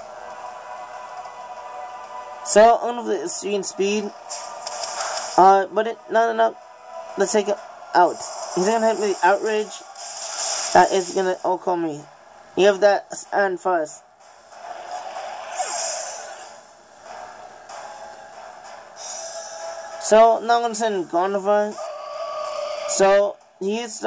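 Electronic game music plays through a small speaker.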